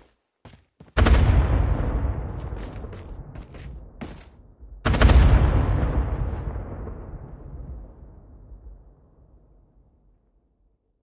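A loud explosion booms and rumbles away.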